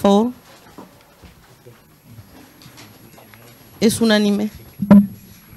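A man speaks briefly through a microphone in a room.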